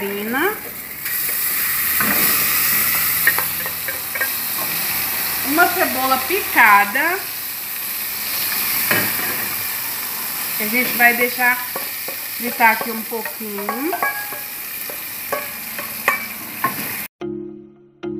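Butter and onion sizzle and hiss in a hot pot.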